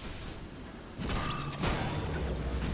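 A heavy metal weapon swings and clangs.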